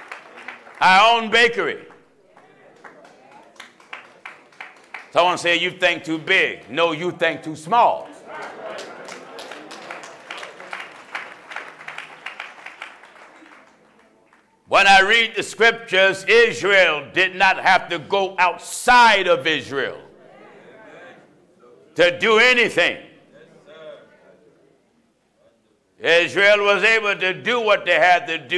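A man preaches loudly and forcefully through a microphone in an echoing hall.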